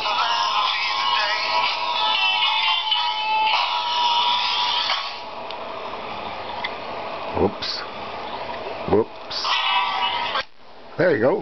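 A tinny rock song plays from a small toy record player.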